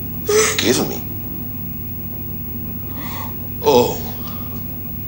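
A young woman sobs and cries out close by.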